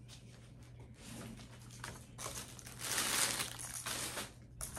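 Items rustle as a young woman handles them in a suitcase.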